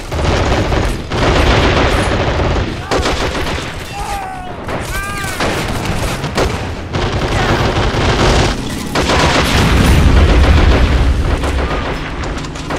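Explosions boom with deep rumbles.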